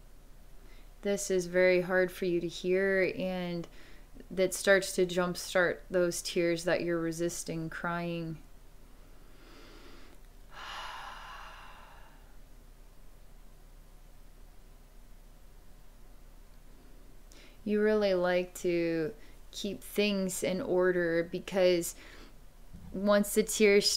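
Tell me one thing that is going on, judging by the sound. A young woman speaks calmly and close to the microphone.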